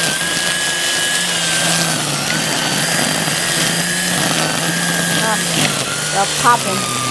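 A string trimmer whines steadily, cutting grass close by.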